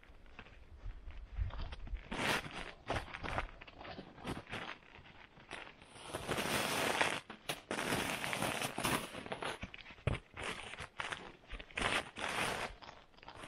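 A foam mat rustles and scrapes as it is folded.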